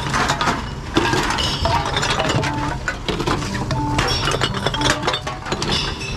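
Glass bottles and cans clink against each other.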